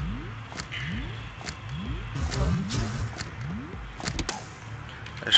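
A gun reloads with metallic clicks.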